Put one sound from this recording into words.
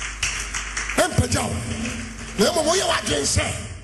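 A man speaks with animation into a microphone, his voice echoing through a large hall.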